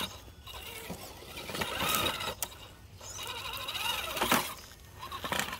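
Toy truck tyres scrape and knock on stone.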